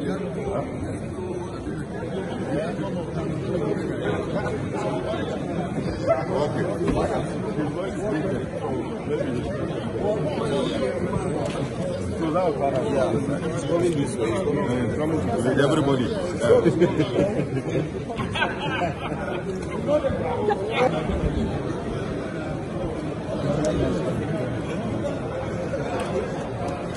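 A crowd of men and women murmur and talk over one another indoors.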